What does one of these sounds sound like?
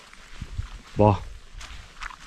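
A dog gives a short, high whine nearby.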